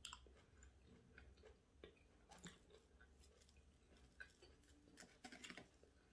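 Crispy fried food crackles as a hand picks it up and dips it.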